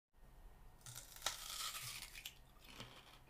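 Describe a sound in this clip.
A man sucks and bites on a piece of fruit close by.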